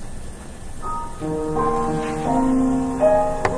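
An organ begins to play.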